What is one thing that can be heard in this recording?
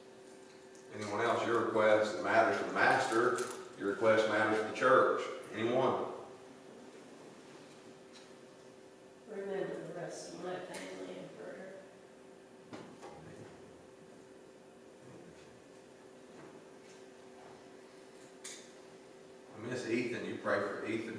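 A man speaks calmly through a microphone in a large echoing room, pausing between phrases.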